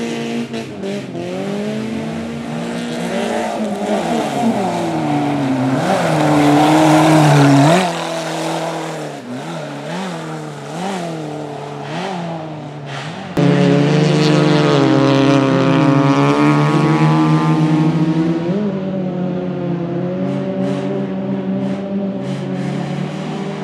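A car engine revs hard, rising and falling in pitch as it shifts gears.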